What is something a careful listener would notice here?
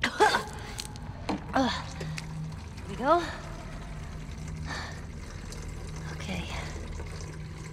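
Fuel gurgles as it pours into a can.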